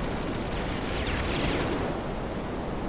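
A jet roars past with a rushing whoosh.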